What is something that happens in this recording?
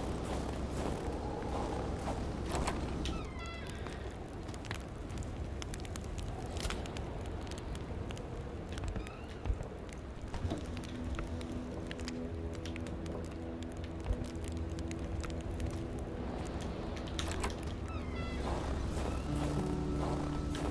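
Wind blows steadily outdoors in a snowstorm.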